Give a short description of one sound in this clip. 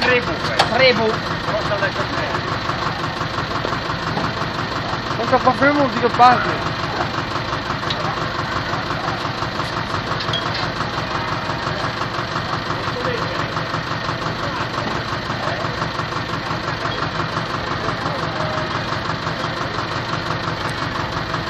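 A small old engine runs with a steady rapid chugging.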